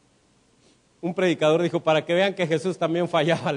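A man speaks with animation through a microphone and loudspeakers.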